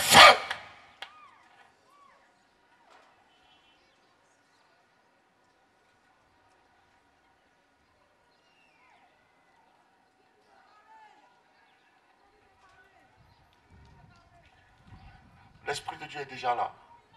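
A man preaches with animation through a loudspeaker.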